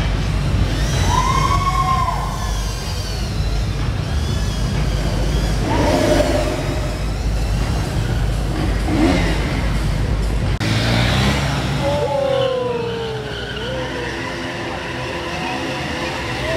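A single-cylinder sport motorcycle engine revs hard during wheelies.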